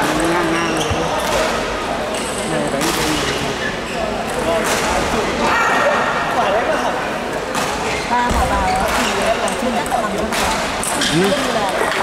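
A ball clicks against paddles and the table in a quick rally.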